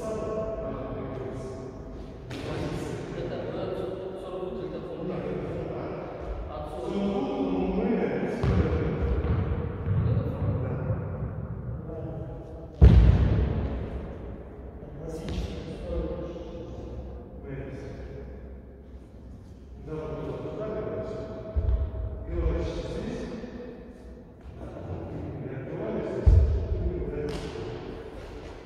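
A man talks calmly nearby in an echoing hall.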